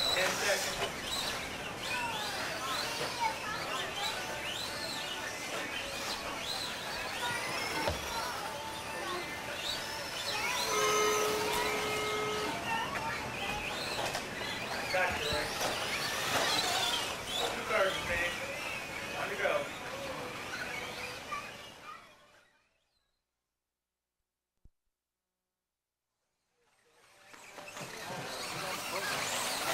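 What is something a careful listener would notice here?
Small electric motors of remote-control cars whine as the cars race.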